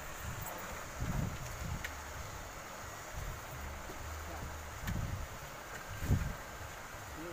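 Heavy sacks thump as they are set down on a sloped bank.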